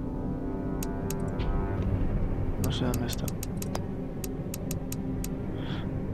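Short menu clicks tick sharply, one after another.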